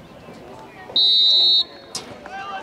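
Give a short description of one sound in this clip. A referee's whistle blows a short sharp blast.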